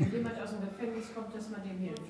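A middle-aged man laughs softly.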